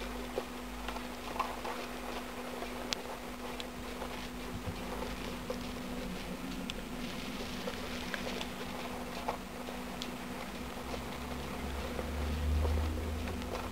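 Small animals rustle and scratch through dry wood shavings.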